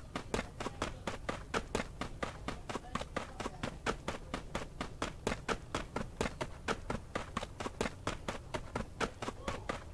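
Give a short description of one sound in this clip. Quick footsteps run steadily over grass and dirt.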